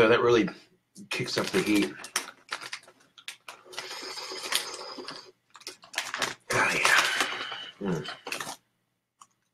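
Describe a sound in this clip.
A crisp bag crinkles and rustles.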